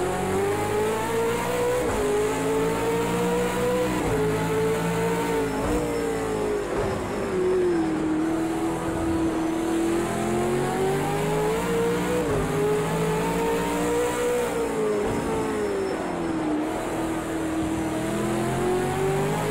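A racing car engine roars loudly, climbing in pitch and dropping sharply at each gear change.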